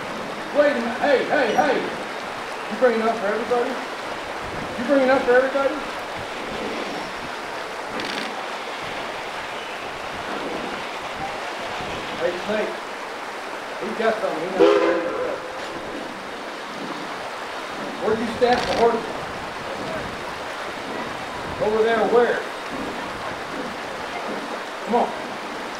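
A fast river rushes and splashes over rocks.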